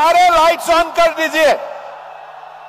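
A man shouts through a loudspeaker in a large echoing space.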